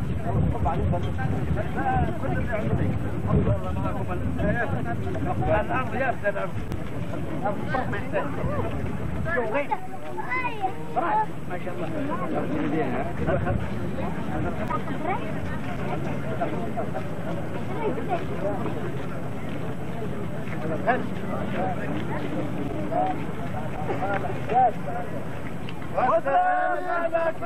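A crowd of men chatters outdoors, with many voices overlapping.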